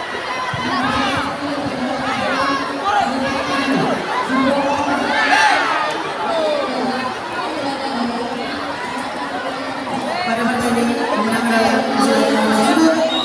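A large crowd cheers and shouts throughout in a big echoing hall.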